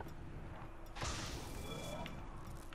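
A burst of magical energy whooshes and crackles loudly.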